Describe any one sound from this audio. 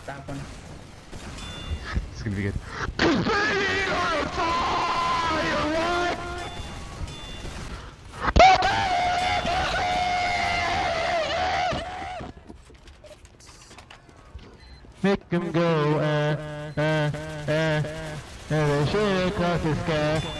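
Shotgun blasts fire in quick bursts.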